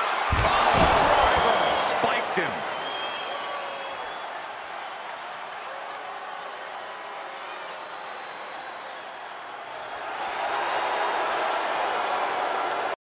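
A large crowd cheers and shouts loudly in a big arena.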